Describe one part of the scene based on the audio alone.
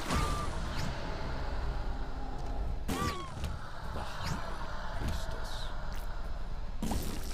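Cartoonish game sound effects pop and splat rapidly.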